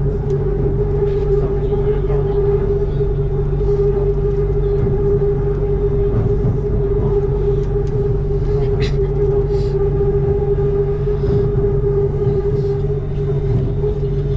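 A train hums steadily as it rolls along.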